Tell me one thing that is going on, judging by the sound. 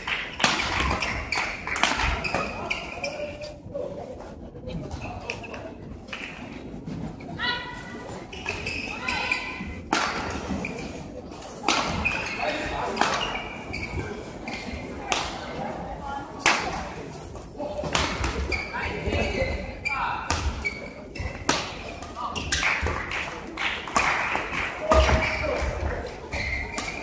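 Shoes squeak on a sports court floor.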